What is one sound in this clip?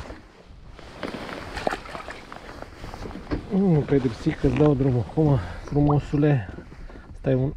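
A fish splashes in the water as it is released.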